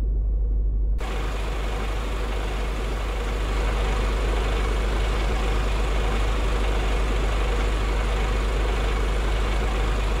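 A truck engine idles with a deep, steady rumble.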